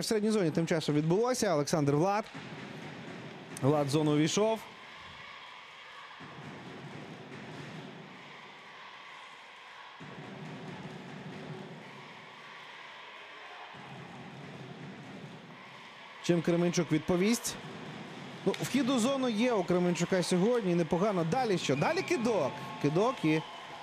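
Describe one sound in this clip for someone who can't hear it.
Ice skates scrape and hiss on ice.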